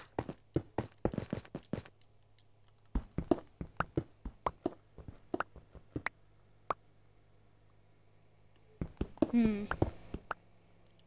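Stone blocks crumble and break apart.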